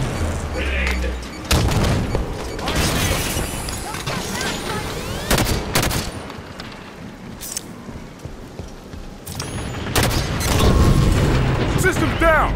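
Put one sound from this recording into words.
Video game gunfire rattles in bursts.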